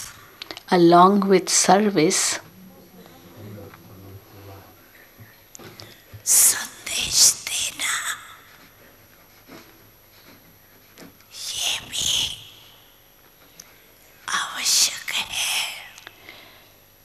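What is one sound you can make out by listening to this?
An elderly woman speaks slowly and calmly into a microphone, with long pauses.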